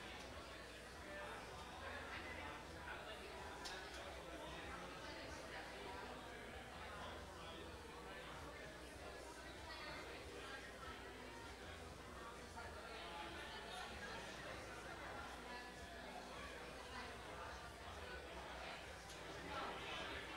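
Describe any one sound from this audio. A crowd of men and women chat all at once in a large room.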